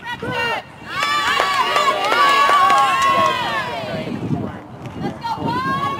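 Young women cheer and shout loudly outdoors.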